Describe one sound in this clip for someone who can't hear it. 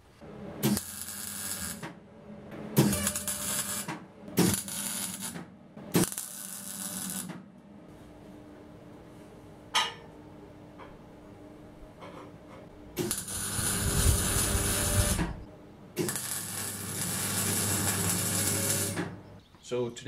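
An electric welder crackles and hisses in short bursts.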